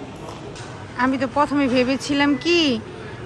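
A young woman speaks animatedly close by.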